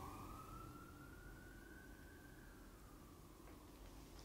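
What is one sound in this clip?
A fiddle holds a long, slowly rising note that fades away in an echoing hall.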